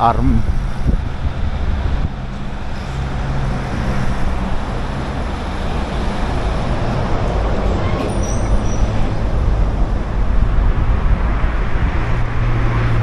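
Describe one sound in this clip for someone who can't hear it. Wind rushes and buffets loudly outdoors.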